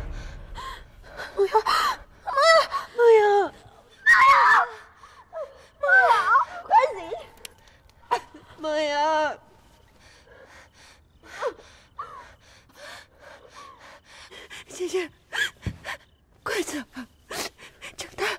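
A young woman sobs and cries out in a trembling voice.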